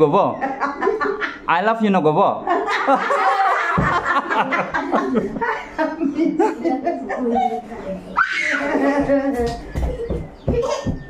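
A woman talks animatedly between laughs close by.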